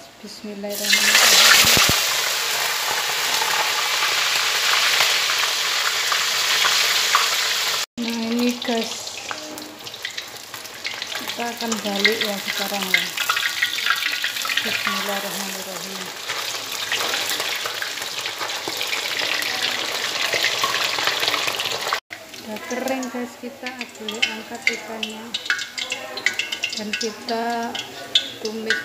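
Oil sizzles and crackles loudly in a pan.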